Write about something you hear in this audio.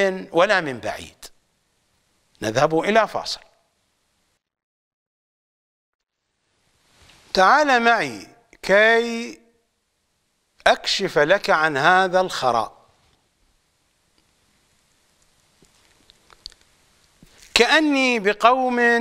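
An older man speaks calmly and deliberately into a microphone, with long pauses.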